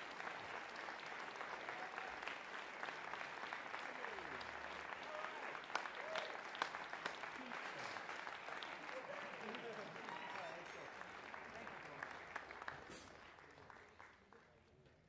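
Applause fills a large hall, then fades away.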